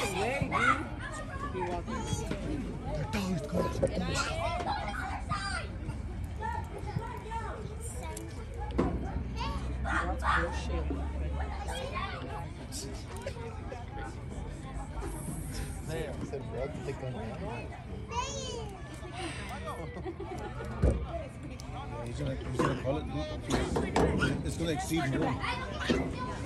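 Men and women nearby talk and call out outdoors.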